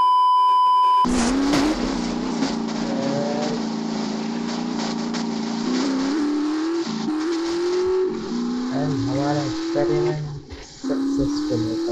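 A vehicle engine hums and revs up and down.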